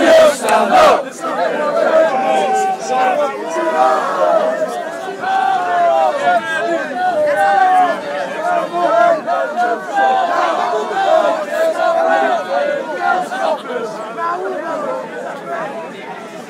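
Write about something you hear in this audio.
A crowd of men shouts and murmurs.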